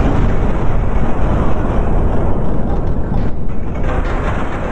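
A huge explosion roars.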